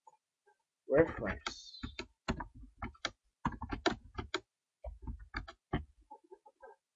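Keys click on a keyboard as someone types.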